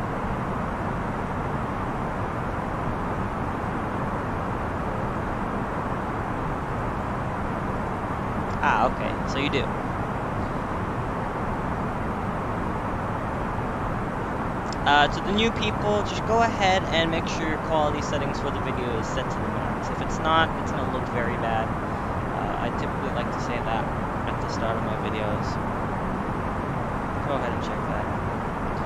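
A steady jet engine hum drones.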